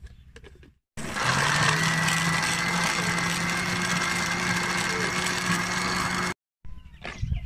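A blender whirs loudly and steadily, then stops abruptly.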